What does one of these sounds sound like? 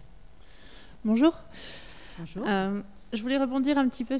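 A woman speaks through a microphone in a large hall, in short phrases.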